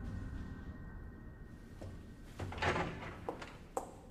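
Footsteps walk away on a hard floor.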